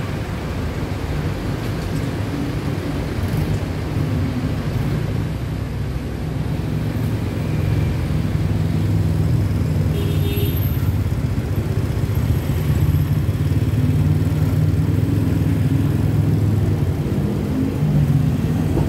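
A motorbike engine hums steadily while riding along a street.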